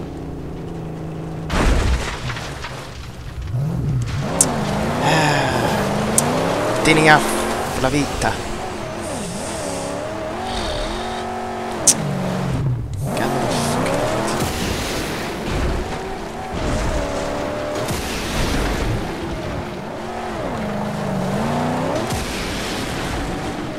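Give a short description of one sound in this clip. A car engine roars and revs.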